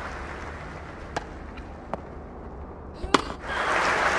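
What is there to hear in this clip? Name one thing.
A tennis ball is struck with a racket in sharp pops.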